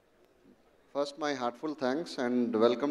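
A man speaks loudly into a microphone over a loudspeaker in a large hall.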